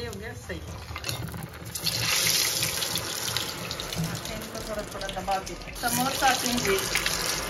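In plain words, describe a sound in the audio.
Hot oil sizzles and crackles loudly as food fries.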